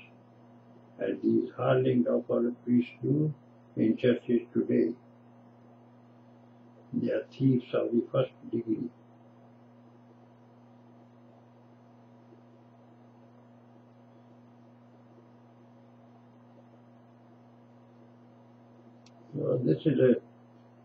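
An elderly man speaks calmly and close by, in short phrases with long pauses.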